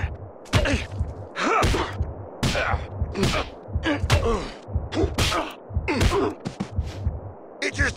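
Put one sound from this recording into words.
Heavy blows thud against a man as he is beaten with a bat.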